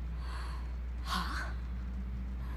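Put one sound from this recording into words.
A young woman asks a short question in a low, worried voice.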